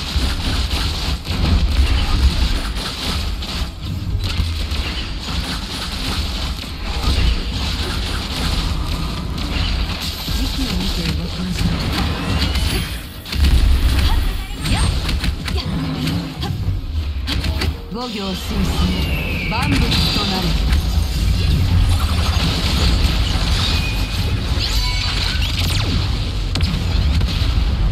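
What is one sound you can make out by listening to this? Sword slashes and energy blasts whoosh and crash rapidly in a game battle.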